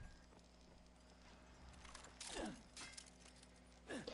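A grappling rope shoots out with a sharp snap.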